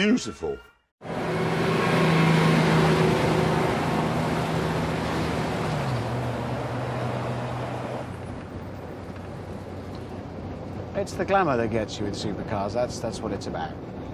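A heavy truck engine drones.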